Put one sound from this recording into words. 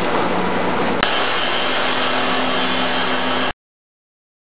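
A cut-off saw grinds loudly through a metal pipe.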